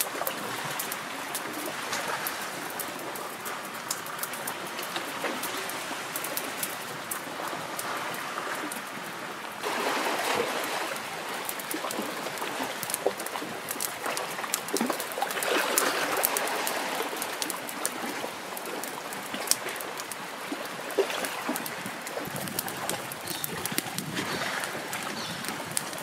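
A wood fire crackles and pops close by.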